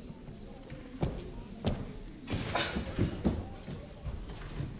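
Footsteps knock on a wooden stage floor.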